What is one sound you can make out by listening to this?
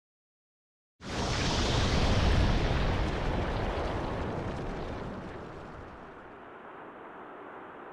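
A loud explosion booms and rumbles, then slowly fades.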